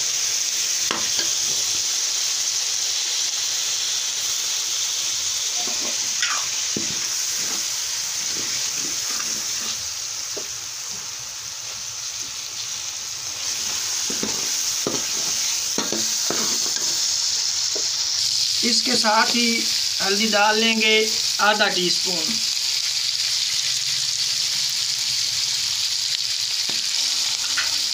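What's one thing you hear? Food sizzles steadily in hot oil.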